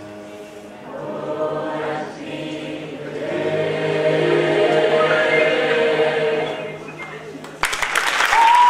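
A large choir sings together in an echoing hall.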